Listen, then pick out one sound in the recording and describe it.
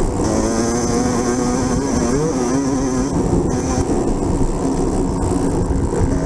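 A motorbike engine drones and revs close by.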